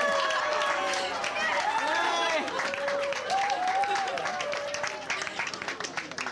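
A crowd of people cheers and chatters excitedly.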